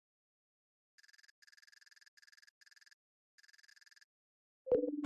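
Short electronic menu beeps sound in quick bursts.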